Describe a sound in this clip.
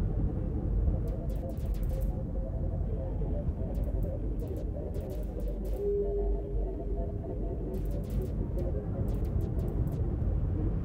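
Electronic shots zap in quick bursts.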